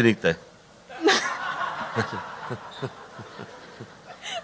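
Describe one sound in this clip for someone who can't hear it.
A woman laughs into a microphone.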